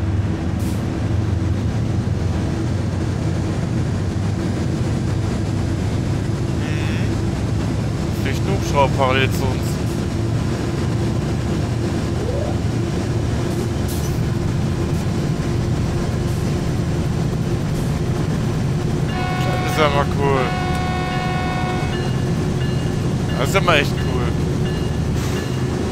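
A locomotive engine rumbles steadily.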